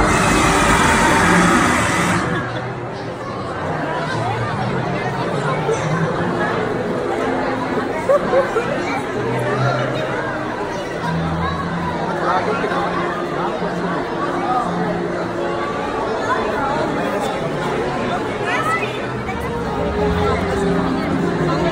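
A large outdoor crowd of men and women chatters all around.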